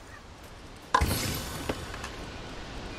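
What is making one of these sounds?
A wooden chest creaks open with a bright burst.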